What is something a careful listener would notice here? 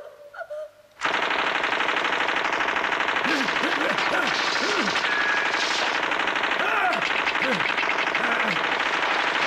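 A man sings loudly to music.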